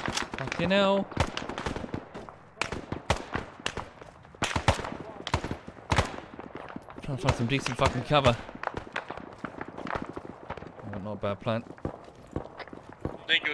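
Footsteps crunch on dirt and gravel.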